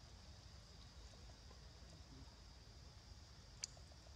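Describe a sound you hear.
A monkey pads softly across stone.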